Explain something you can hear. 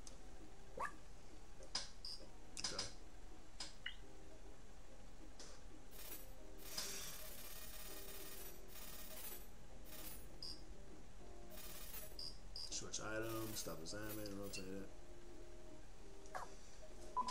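Short game menu clicks and chimes sound now and then.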